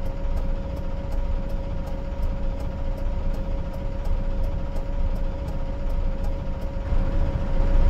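A turn signal ticks in a quick rhythm.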